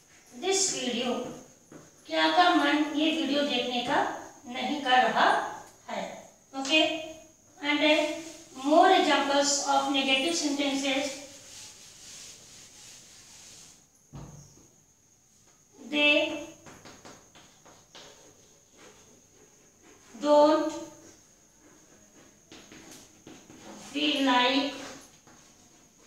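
A woman speaks clearly and steadily, as if teaching, close by.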